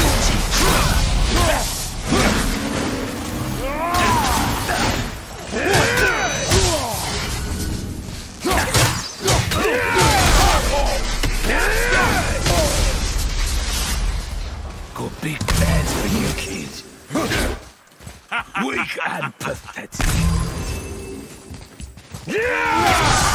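An axe strikes with heavy, sharp blows.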